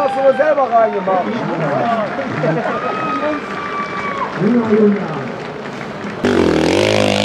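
Spectators shout and cheer from a distance.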